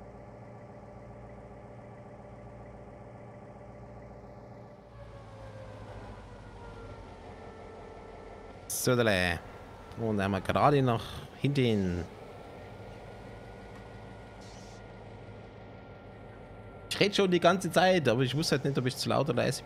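A diesel locomotive engine idles with a steady low rumble.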